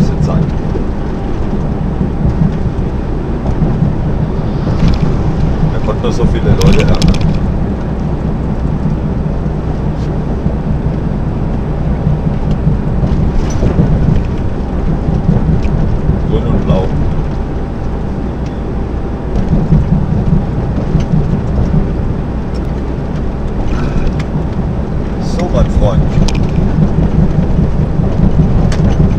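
Tyres roll on asphalt beneath a truck.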